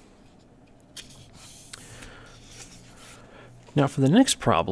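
A sheet of paper rustles and slides.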